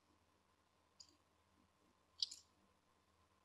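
Eggshell halves tap lightly as an egg drips out.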